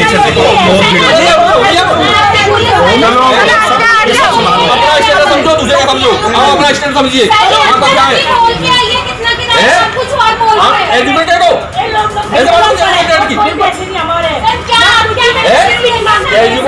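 Several people argue loudly at once.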